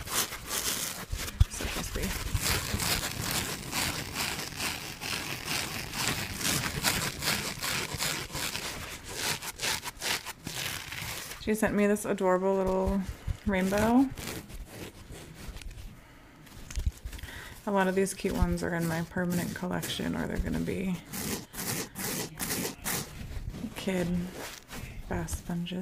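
Fingernails tap and scratch on a soft rubbery object close to a microphone.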